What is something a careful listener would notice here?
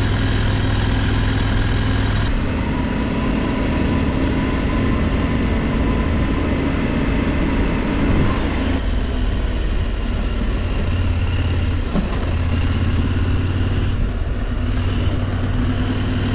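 Tyres crunch over a sandy gravel road.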